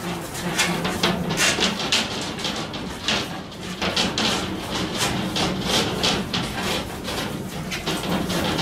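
Something rubs and scrapes against a surface in quick, repeated strokes.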